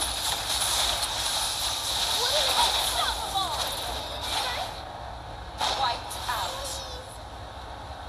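Game attack hits clash and zap rapidly.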